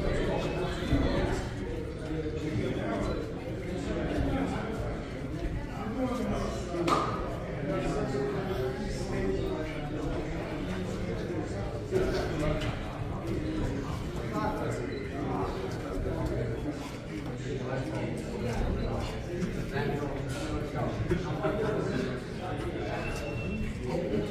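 A crowd of people murmurs and chatters in a large echoing room.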